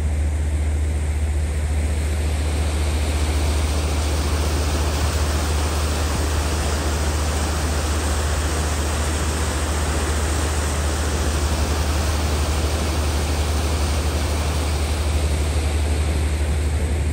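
Wind gusts over open water.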